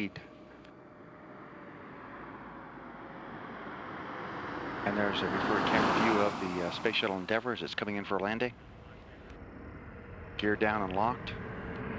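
A large aircraft roars overhead, growing steadily louder as it approaches.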